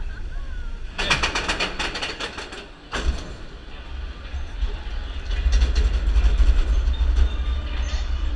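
A ride car rattles and clacks along its track.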